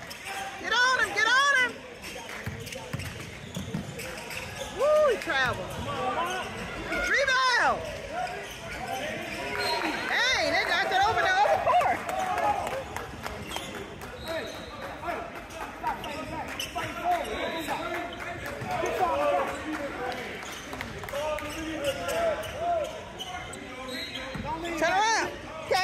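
Players and spectators chatter and call out in a large echoing hall.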